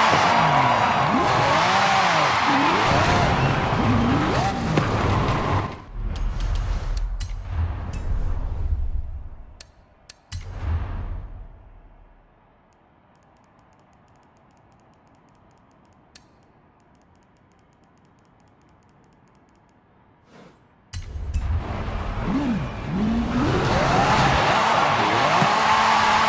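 A car engine revs loudly.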